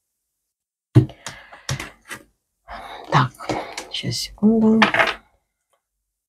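Cards riffle as a deck is shuffled.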